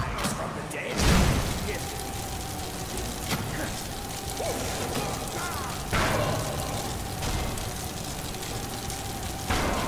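A magical frost blast hisses and crackles steadily.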